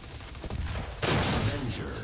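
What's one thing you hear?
Gunfire blasts in rapid bursts.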